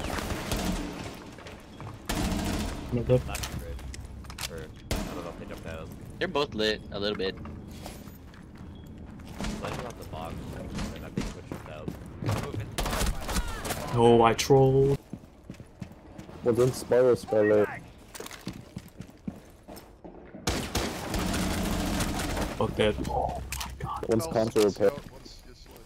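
Gunshots fire in short rapid bursts.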